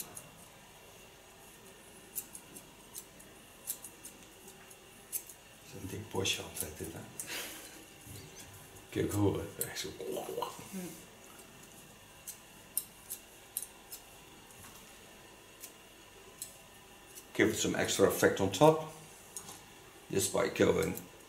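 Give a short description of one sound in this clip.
Scissors snip through hair with short, crisp clicks.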